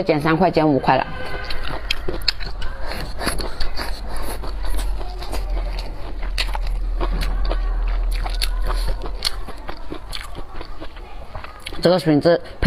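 A young woman slurps noodles and chews loudly.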